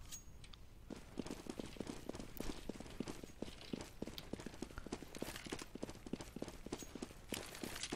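Footsteps tap quickly on stone pavement.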